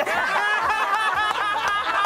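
A man laughs loudly and heartily.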